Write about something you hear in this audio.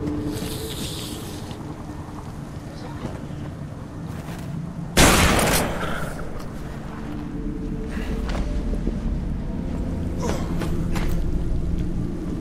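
Footsteps patter as a figure moves about.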